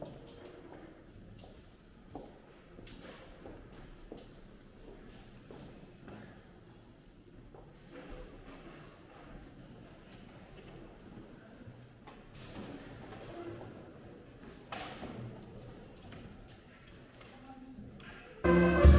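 Footsteps shuffle across a hard floor in a large echoing hall.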